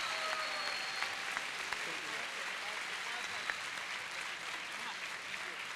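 Young women shout and cheer with excitement.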